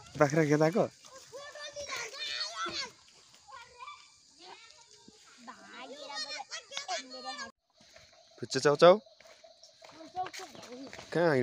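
Children talk and call out nearby, outdoors.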